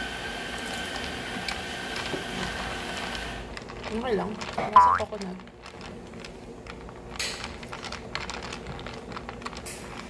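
Ice clinks as a straw stirs a drink.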